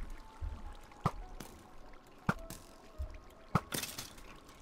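A bowstring twangs sharply as arrows are shot.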